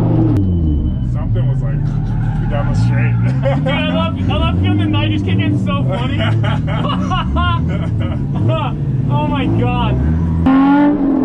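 A man talks with animation, close by inside a car.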